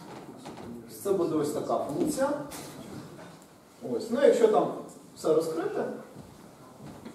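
A man speaks in a lecturing tone in a slightly echoing room.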